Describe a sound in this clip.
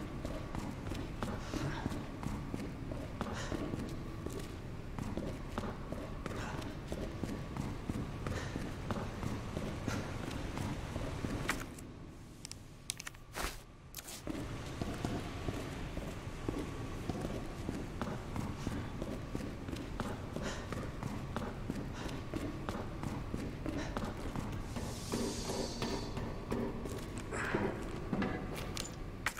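Footsteps splash and thud on a wet hard floor.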